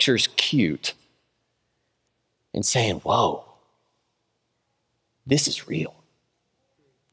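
A man speaks through a microphone in short, deliberate phrases with long pauses.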